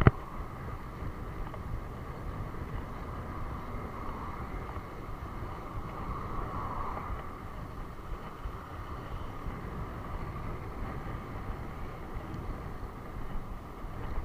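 Wind rumbles steadily across a microphone.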